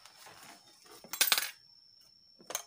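Hands knock and rustle against a plastic meter.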